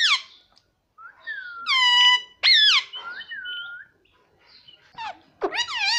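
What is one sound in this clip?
A rose-ringed parakeet gives shrill squawks.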